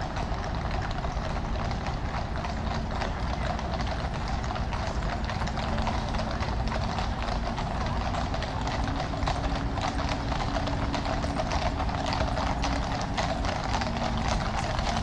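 A car engine hums as it rolls slowly past.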